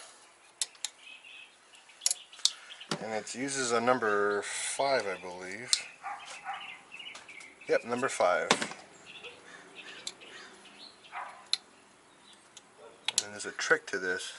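Metal engine parts click and clink as they are handled.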